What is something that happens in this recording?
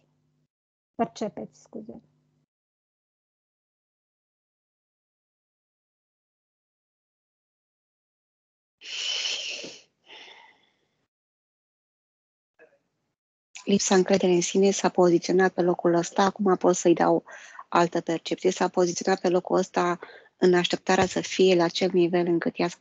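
A woman speaks calmly and softly over an online call.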